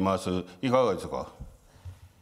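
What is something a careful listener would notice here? A man speaks calmly into a microphone in a large room.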